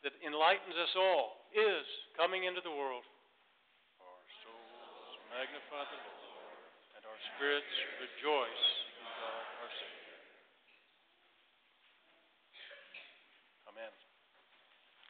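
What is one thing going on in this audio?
A man preaches over a loudspeaker system in a large echoing hall.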